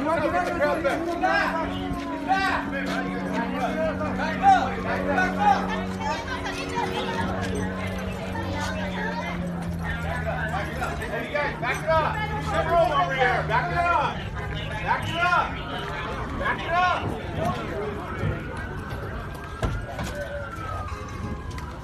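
A crowd of men and women shout and talk excitedly nearby.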